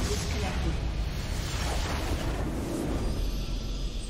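Game battle effects crash and explode loudly.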